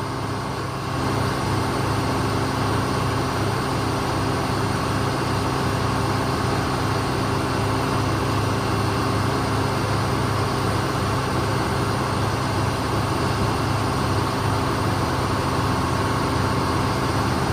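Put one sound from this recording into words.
A heavy machine's diesel engine rumbles steadily nearby.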